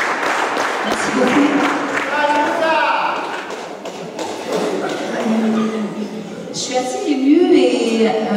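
A woman speaks into a microphone through loudspeakers.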